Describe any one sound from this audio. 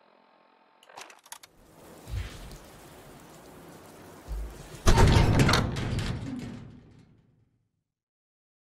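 A heavy metal door rumbles and clanks open, then fades away.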